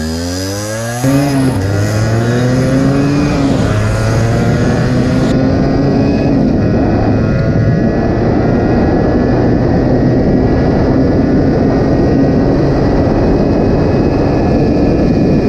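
Wind rushes past while riding.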